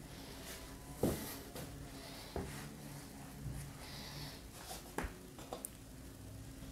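Knocks and taps sound on wood.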